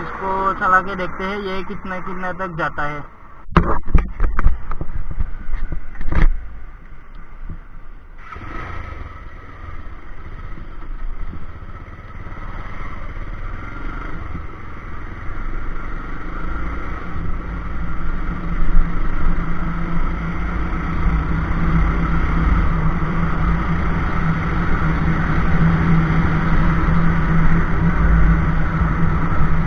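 A motorcycle engine idles and revs up close.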